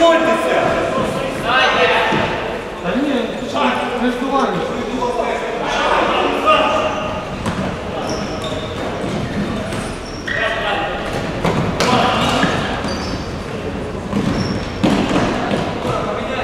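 Men shout and call out to each other across a large echoing hall.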